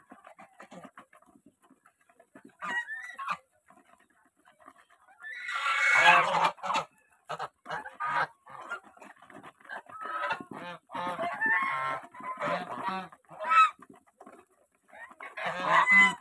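Geese peck and nibble at grain.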